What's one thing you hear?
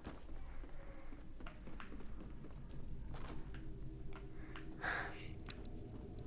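Footsteps patter quickly across a floor.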